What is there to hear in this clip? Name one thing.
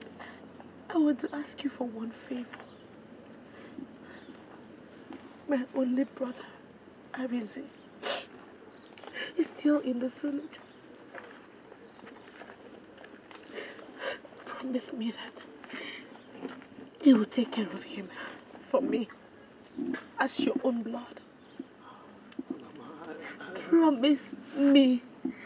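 A young woman speaks tearfully and sobs close by.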